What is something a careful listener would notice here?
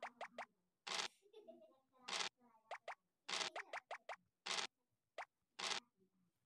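A die rattles briefly as it is rolled, several times.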